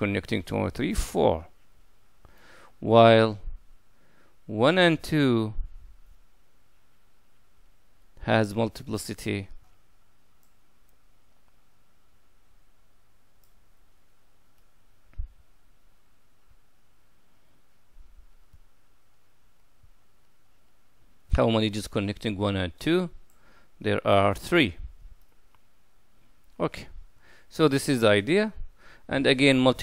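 A middle-aged man speaks calmly and clearly into a close microphone, pausing often.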